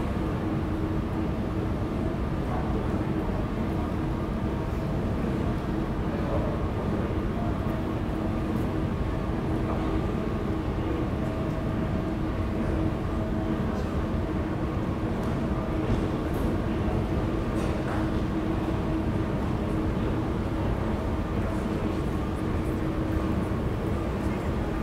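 City traffic rumbles steadily in the distance, heard from high above.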